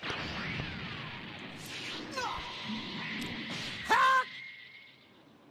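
Fighting sound effects whoosh and crash.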